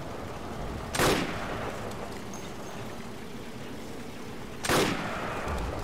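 A rifle fires a sharp, loud shot that echoes outdoors.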